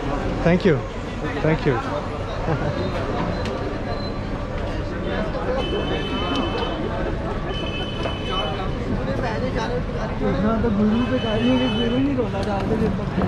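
Traffic hums steadily in the background.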